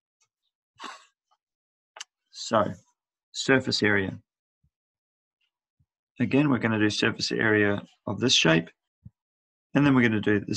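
A middle-aged man speaks calmly and clearly into a headset microphone, explaining in short phrases.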